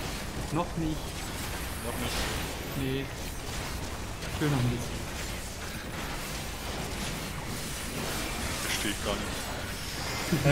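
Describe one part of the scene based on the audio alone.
Fantasy battle sound effects whoosh and crackle.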